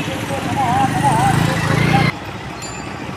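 Street traffic rumbles nearby outdoors.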